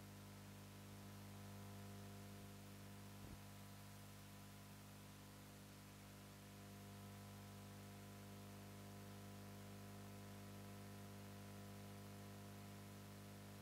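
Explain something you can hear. A woman speaks calmly into a microphone, heard over loudspeakers in a large hall.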